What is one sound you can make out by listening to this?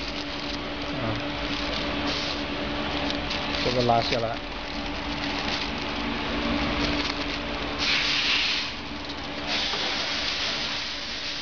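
Plastic film crinkles and rustles as hands handle it.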